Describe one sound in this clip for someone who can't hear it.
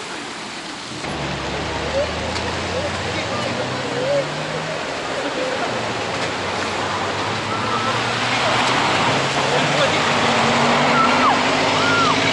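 Traffic rumbles past on a wet road.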